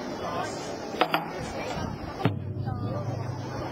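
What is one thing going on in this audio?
Large drums are struck a few times.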